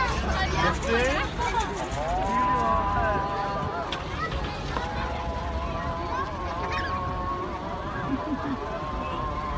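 A crowd of men and women chatter outdoors at a distance.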